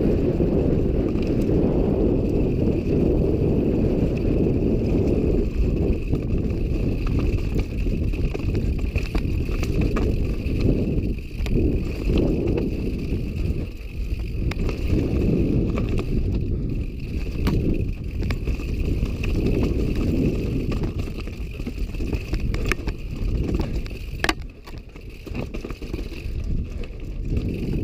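Bicycle parts clatter and knock over bumps.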